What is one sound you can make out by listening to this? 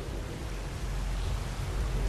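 Water pours down steadily with a low rushing sound.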